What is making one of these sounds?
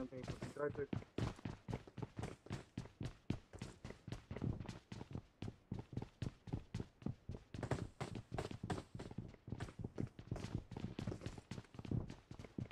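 Footsteps run in a video game.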